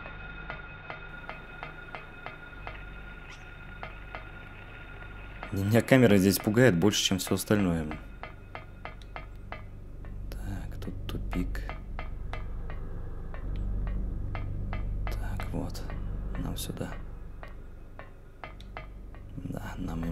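Footsteps clank steadily on a metal grating.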